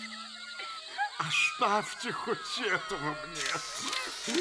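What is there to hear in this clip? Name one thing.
An elderly man speaks in a quirky, excited cartoon voice.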